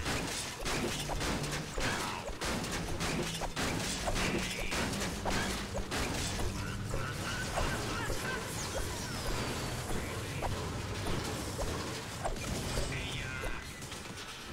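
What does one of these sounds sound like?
A pickaxe strikes hard objects again and again with sharp thuds.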